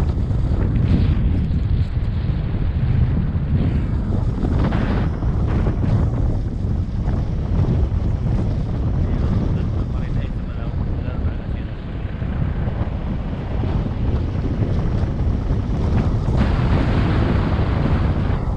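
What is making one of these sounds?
Wind rumbles loudly across the microphone outdoors.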